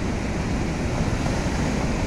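A car splashes through flowing water.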